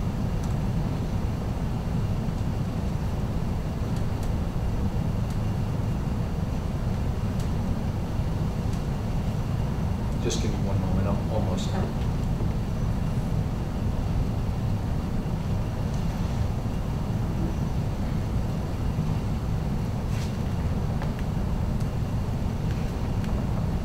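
A man speaks calmly at a distance in a room.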